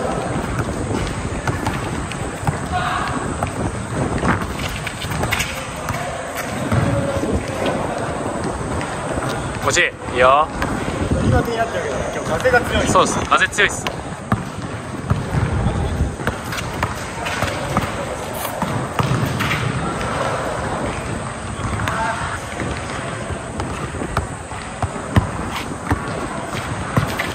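A basketball bounces on hard pavement.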